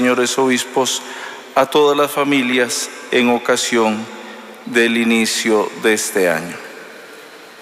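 An older man speaks calmly through a microphone in a large echoing hall.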